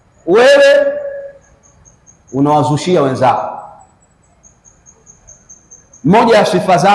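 A man preaches with animation into a close microphone, in bursts with pauses.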